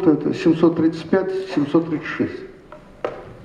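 An elderly man reads aloud into a microphone, heard through a loudspeaker in a large room.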